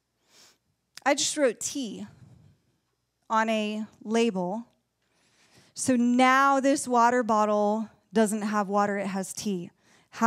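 A woman speaks with animation through a microphone into a room.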